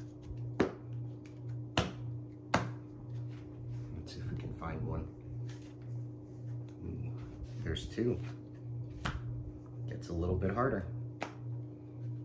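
Playing cards tap and slide onto a cloth mat.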